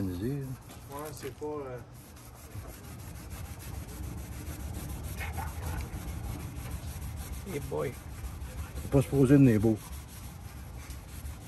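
A cloth rubs against a metal surface.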